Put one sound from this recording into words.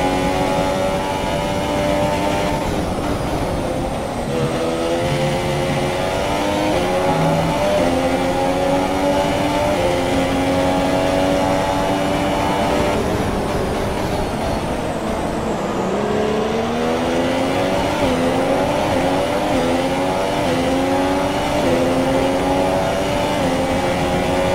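A Formula One car's engine screams at high revs.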